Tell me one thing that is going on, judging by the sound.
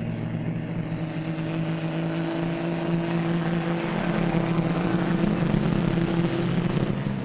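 Tyres crunch on a gravel road.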